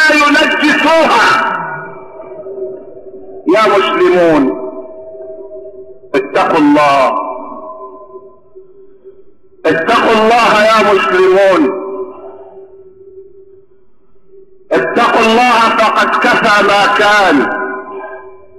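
An elderly man chants in a melodic voice with a long echo, in phrases separated by pauses.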